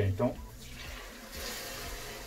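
Liquid pours into a hot pan and sizzles.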